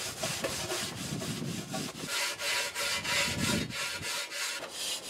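Sandpaper scrapes rapidly over metal.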